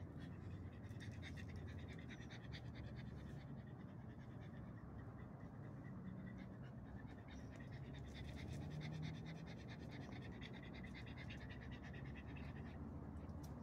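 A small dog pants rapidly close by.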